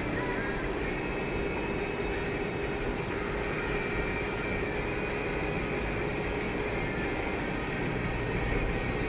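Tyres roll steadily on asphalt.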